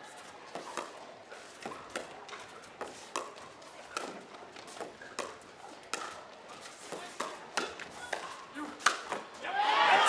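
Paddles strike a plastic ball back and forth in a quick rally.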